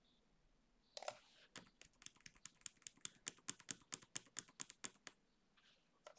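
Computer keys clack in quick bursts of typing.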